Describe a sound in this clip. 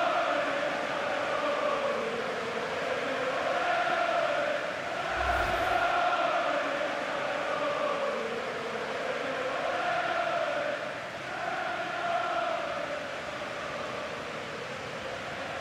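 A large crowd chants loudly in a stadium.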